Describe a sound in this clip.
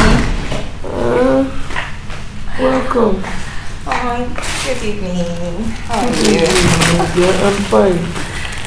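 An older woman speaks in reply nearby.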